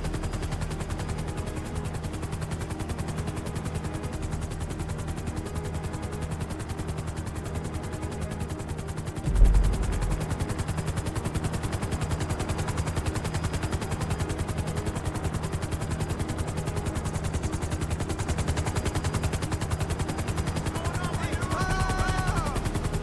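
Helicopter rotor blades chop steadily and fast.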